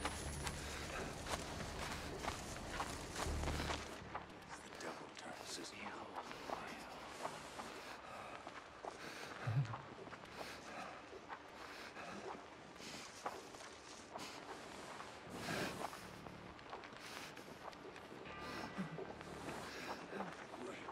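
Tall leafy plants rustle and crackle as someone pushes through them.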